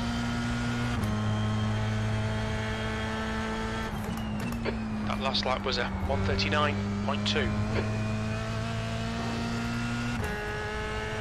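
A racing car engine changes pitch abruptly as gears shift.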